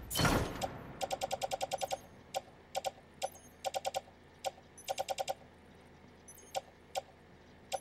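Short electronic menu ticks click in quick runs.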